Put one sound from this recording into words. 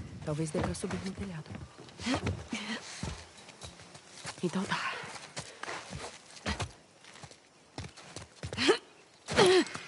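Footsteps scuff on a hard ground.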